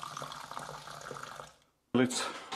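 Water from a tap splashes into a jar and fizzes.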